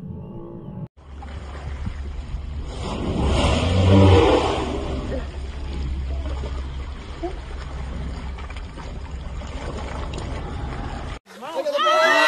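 Waves lap gently against a surfacing whale.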